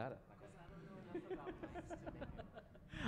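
A young man laughs through a microphone.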